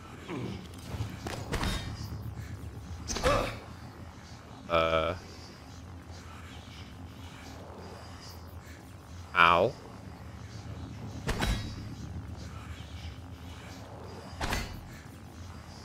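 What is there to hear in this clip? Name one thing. Footsteps tread softly on a metal floor.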